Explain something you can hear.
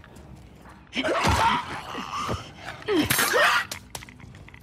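A knife stabs into flesh with a wet, struggling thud.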